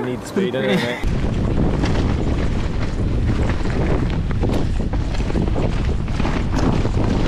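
Bicycle tyres rattle and crunch over a rough dirt trail.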